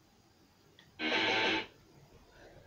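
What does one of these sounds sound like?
A short, loud musical sting plays from a television speaker.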